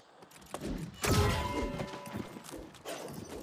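Weapons strike and magic bursts crash in a fight.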